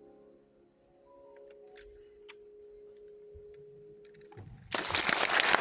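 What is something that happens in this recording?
A piano plays its last notes softly in a hall.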